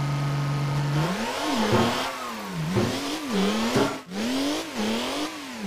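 A tractor's diesel engine revs up and down.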